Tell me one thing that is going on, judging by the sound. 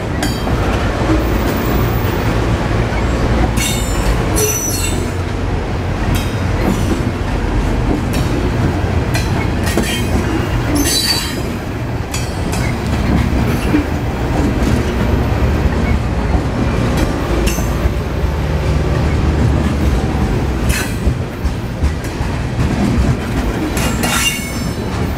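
Train wheels clank and squeal on the rails.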